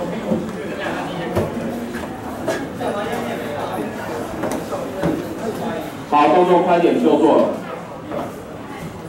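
A crowd of students chatters and murmurs.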